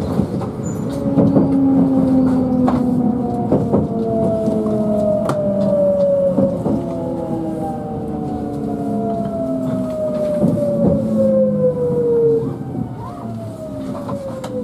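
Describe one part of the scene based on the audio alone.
A train's motor whines, falling slowly in pitch as the train slows down.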